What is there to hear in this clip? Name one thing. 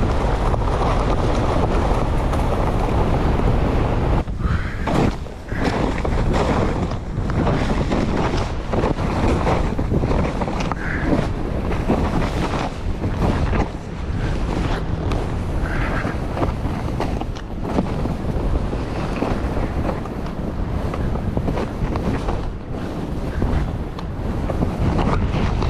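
Wind roars loudly across a close microphone.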